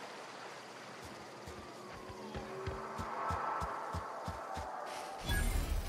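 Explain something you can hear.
Footsteps tread steadily through grass.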